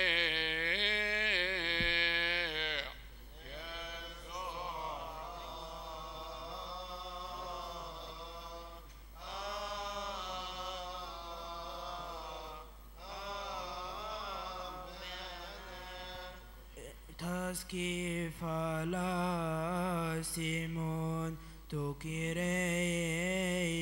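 Men chant in unison through a microphone in a large echoing hall.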